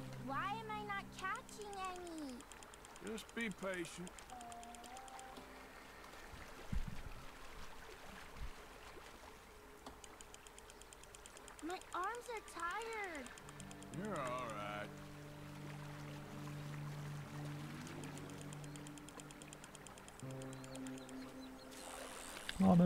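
A fishing reel clicks rapidly as line is wound in.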